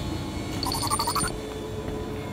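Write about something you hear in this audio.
A short electronic chime rings out.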